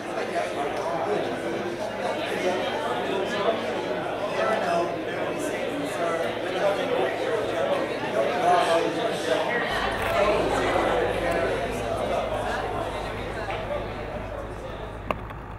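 A double bass is plucked.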